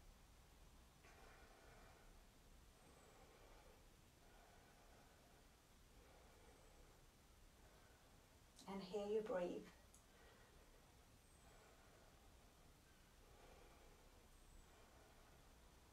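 A woman speaks softly and calmly, close by.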